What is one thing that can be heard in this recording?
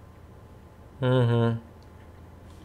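A computer terminal gives a short electronic tone as it shuts off.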